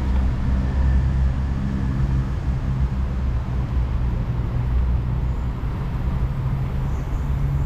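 Bicycle tyres roll over a paved path.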